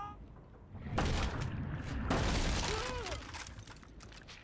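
Wooden boards crack and splinter as they are smashed.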